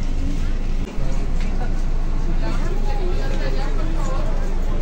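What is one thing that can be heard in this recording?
A young woman talks close by.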